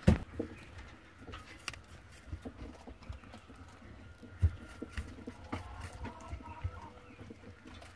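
A rabbit crunches and nibbles on a piece of apple close up.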